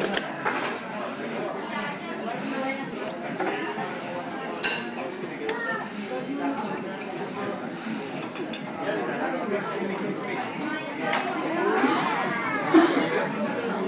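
A toddler laughs.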